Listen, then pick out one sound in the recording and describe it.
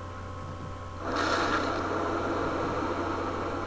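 A gush of spraying blood hisses loudly and steadily.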